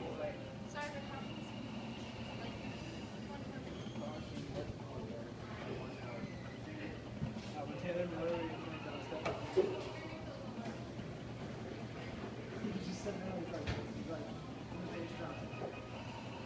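An arcade cabinet plays its demo soundtrack through loudspeakers.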